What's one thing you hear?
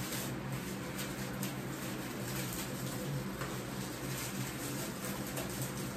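Plastic packaging crinkles and rustles.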